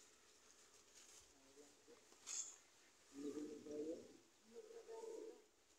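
Goats tear and munch grass close by.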